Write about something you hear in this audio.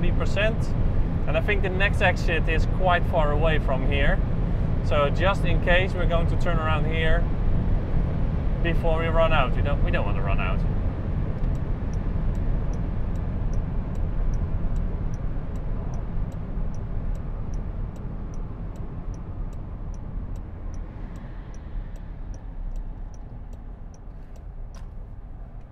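A car hums and rumbles steadily on a road, slowly growing quieter.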